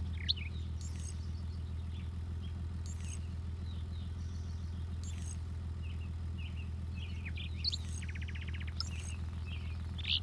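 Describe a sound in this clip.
Short electronic menu blips sound as a selection changes.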